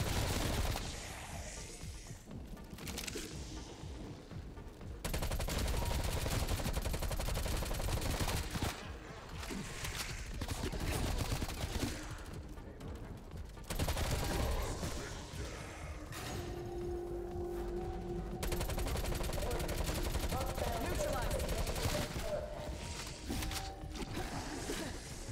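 Gunshots crack and echo in rapid bursts.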